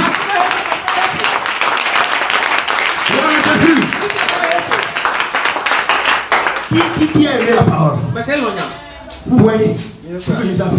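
A crowd of men and women clap their hands in rhythm.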